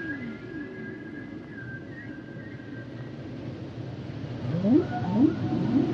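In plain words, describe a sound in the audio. Whales call underwater with long, rising and falling moans.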